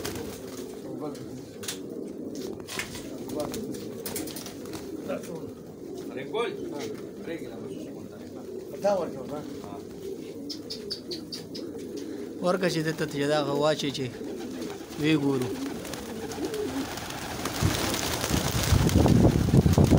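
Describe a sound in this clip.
Pigeons coo steadily all around.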